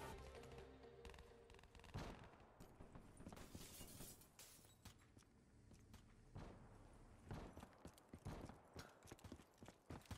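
Footsteps tread quickly on a hard floor.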